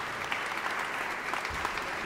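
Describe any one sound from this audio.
A man speaks to an audience in a large echoing hall.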